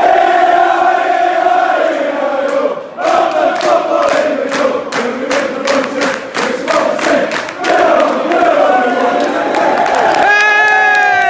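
Fans clap their hands in rhythm.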